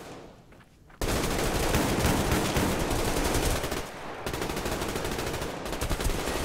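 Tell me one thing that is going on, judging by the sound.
A rifle fires several loud shots.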